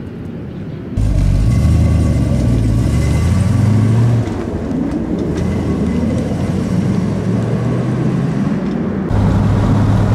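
A car engine revs and accelerates away.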